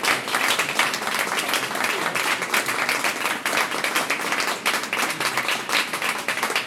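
A hand drum taps out a rhythm.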